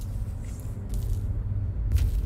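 Electric sparks crackle and fizz.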